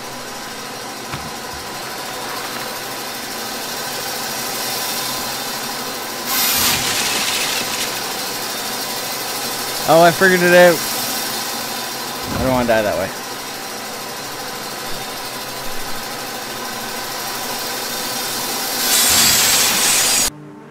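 A spinning saw blade whirs steadily.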